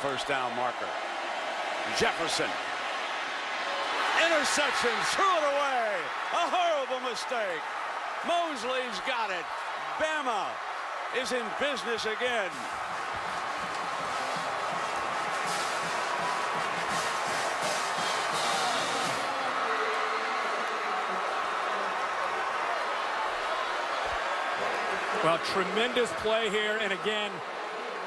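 A large crowd roars steadily in a big stadium.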